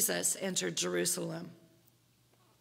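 A woman speaks calmly through a microphone in an echoing hall.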